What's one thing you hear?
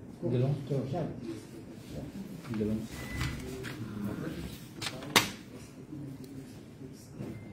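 Paper rustles and flaps as sheets are handled.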